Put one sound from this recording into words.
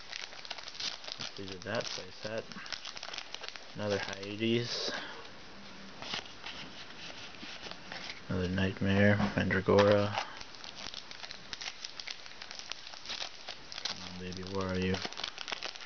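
A foil wrapper crinkles and tears as hands open a card pack.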